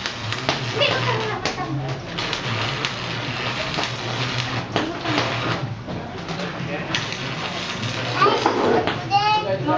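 An electric welder crackles and sizzles in short bursts.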